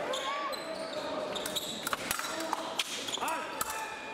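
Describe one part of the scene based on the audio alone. Steel blades clash and scrape together.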